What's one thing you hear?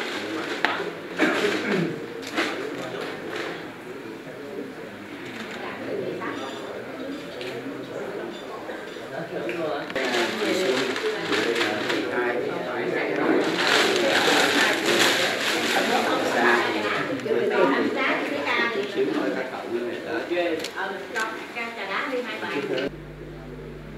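An elderly man speaks calmly and at length.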